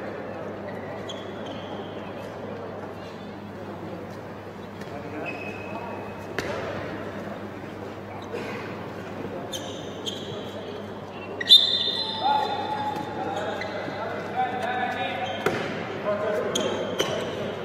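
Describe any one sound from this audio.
Sneakers squeak sharply on an indoor court.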